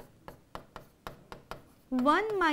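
A pen taps sharply against a board.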